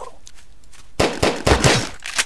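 A gun fires loud bursts of shots.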